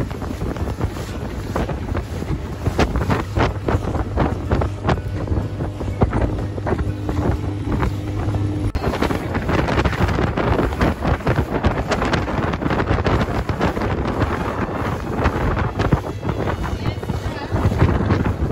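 Water splashes and sprays against a speeding boat's hull.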